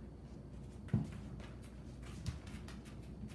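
A dog's paws thump onto a low platform.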